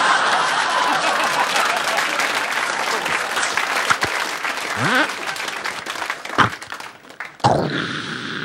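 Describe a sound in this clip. A studio audience laughs loudly.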